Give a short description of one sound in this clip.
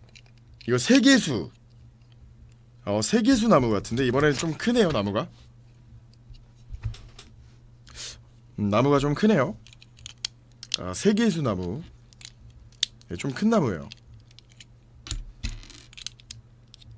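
Plastic toy bricks click together.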